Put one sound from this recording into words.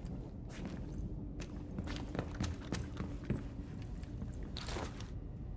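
Footsteps thud on a wooden floor.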